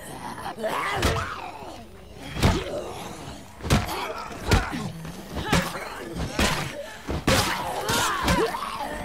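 Heavy blows thud in a scuffle.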